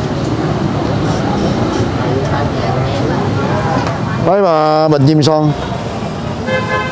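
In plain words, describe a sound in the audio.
Several adults talk nearby.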